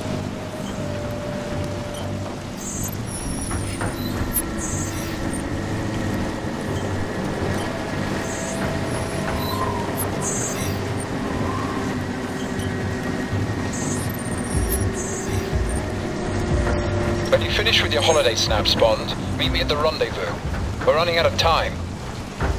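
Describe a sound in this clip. Heavy rain falls steadily outdoors in gusting wind.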